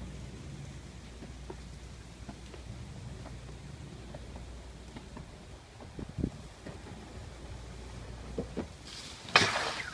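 Skateboard wheels roll and rumble over concrete.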